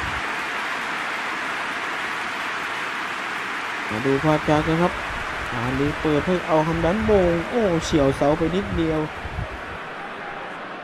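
A large crowd roars steadily, then fades.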